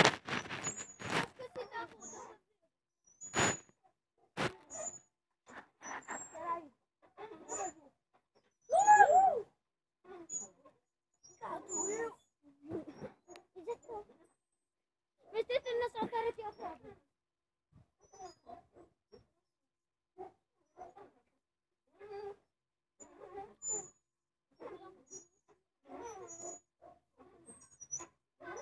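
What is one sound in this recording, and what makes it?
Swing chains creak rhythmically.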